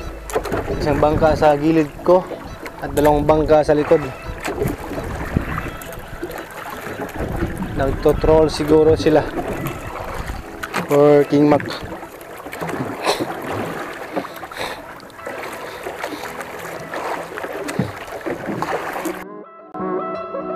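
Waves slap against a small boat's hull.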